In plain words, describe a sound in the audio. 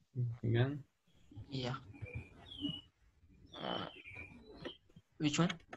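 A man talks calmly over an online call.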